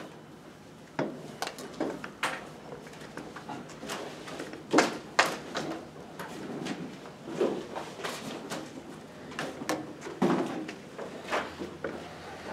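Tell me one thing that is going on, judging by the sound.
Footsteps cross a hard floor in an echoing room.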